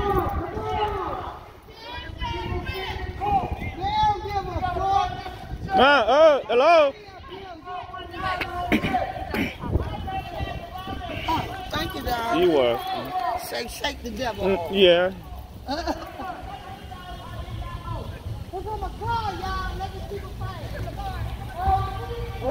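An elderly woman talks close by, outdoors.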